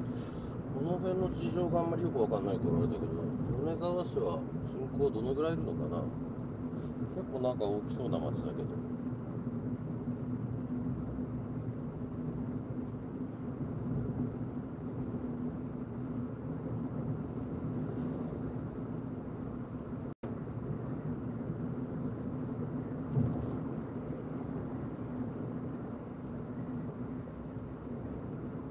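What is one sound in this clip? Tyres roll with a low rumble over the road.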